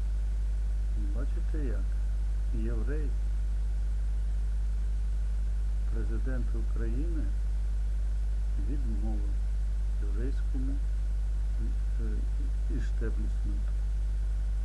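An elderly man speaks calmly and haltingly into a nearby microphone.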